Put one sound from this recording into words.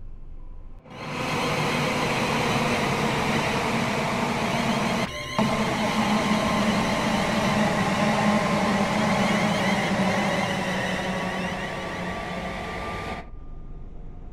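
A train roars loudly past along the tracks.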